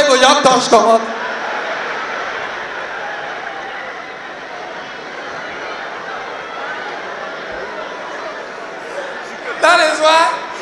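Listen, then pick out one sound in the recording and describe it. A large audience laughs and cheers.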